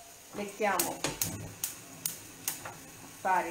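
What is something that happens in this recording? A metal pan clanks on a stove.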